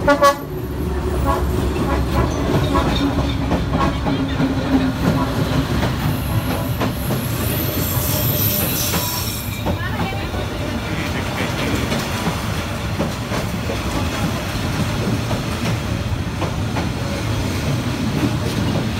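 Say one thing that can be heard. A train rumbles past close by, wheels clattering on the rails.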